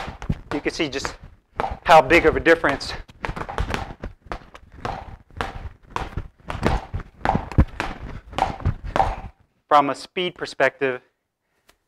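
Gloved fists thump a speed bag again and again.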